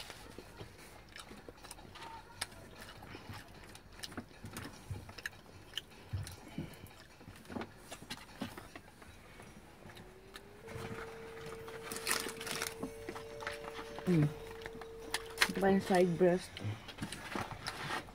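A woman chews and eats close by.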